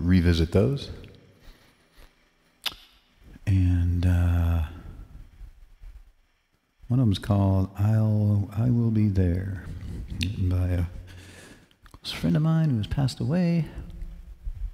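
A man speaks through a headset microphone with animation.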